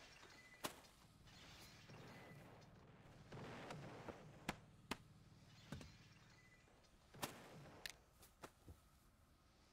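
Cartoonish bodies thump and knock as they tumble into each other.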